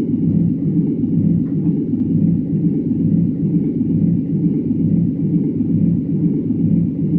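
A jet engine drones steadily and low.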